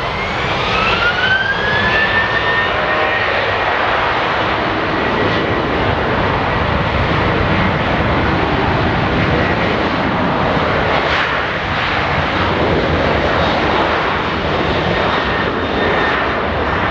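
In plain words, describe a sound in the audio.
A jet airliner's engines roar loudly close by as it rolls past.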